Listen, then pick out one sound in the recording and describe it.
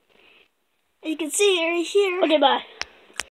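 A young boy speaks loudly and playfully close to the microphone.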